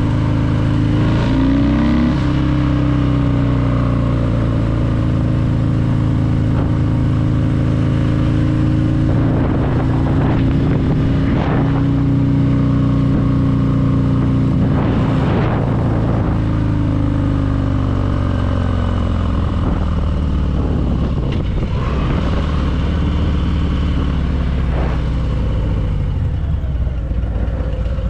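Wind buffets past the rider.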